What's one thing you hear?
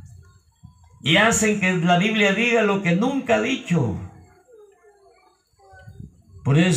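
An elderly man speaks with animation through a microphone and loudspeakers.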